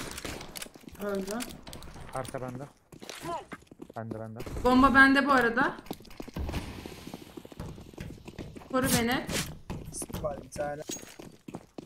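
A young woman talks animatedly into a microphone.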